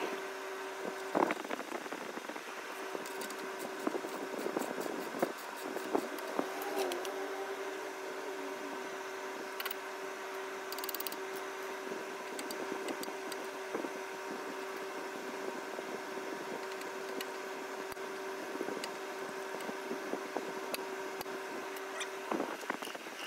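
Metal tools clink and ratchet against metal parts.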